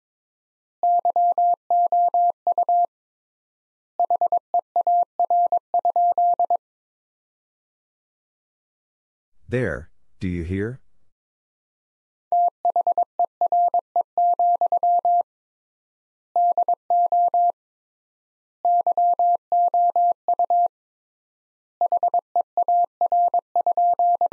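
A telegraph key taps out Morse code in short and long steady beeps.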